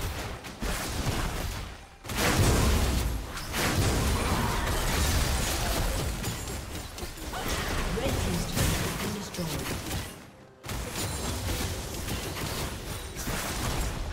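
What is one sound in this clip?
Game spell effects and attacks crackle and burst.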